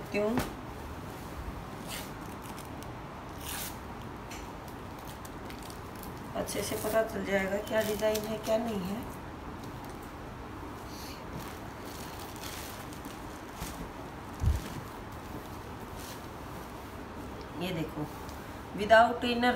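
Cloth rustles as it is folded and unfolded.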